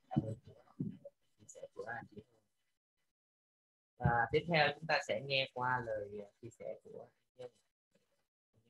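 A woman speaks with animation through an online call.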